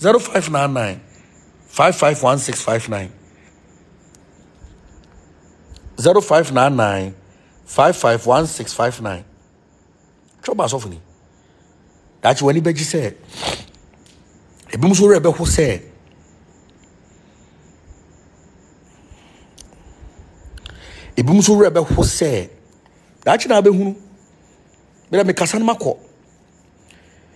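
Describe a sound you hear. A man talks close up with animation, in short bursts with pauses.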